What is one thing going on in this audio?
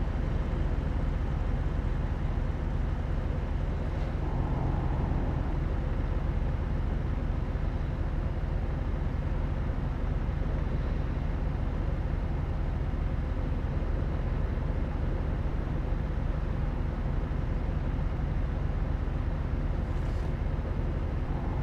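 A truck engine hums steadily while driving along a road.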